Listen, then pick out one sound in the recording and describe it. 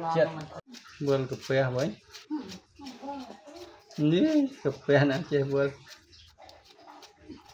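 A knife scrapes peel off a vegetable.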